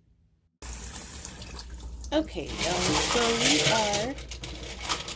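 Water runs from a tap and splashes into a bowl.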